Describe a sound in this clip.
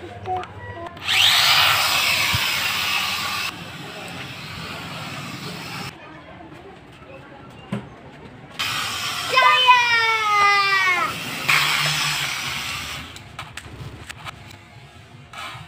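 A toy drone's propellers buzz with a high whine.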